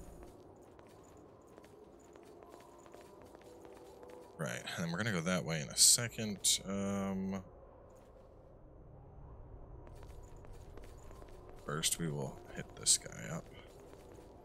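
Footsteps run quickly on a stone floor.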